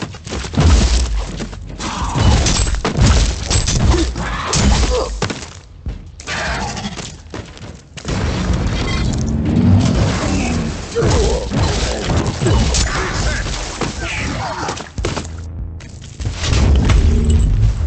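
Explosions boom and crash.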